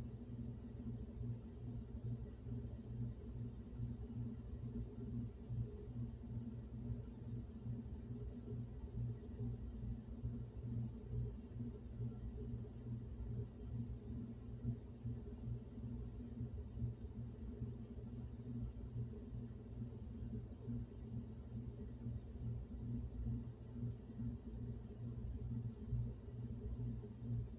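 Air from a heating vent blows with a low, steady hum.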